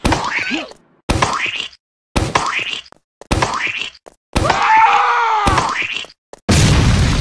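A rocket launcher fires several times with whooshing blasts.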